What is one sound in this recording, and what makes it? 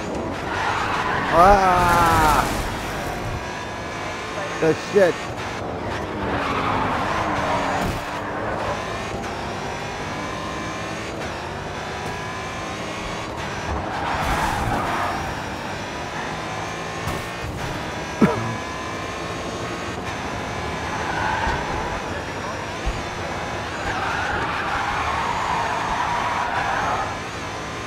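A racing car engine roars steadily and shifts gears.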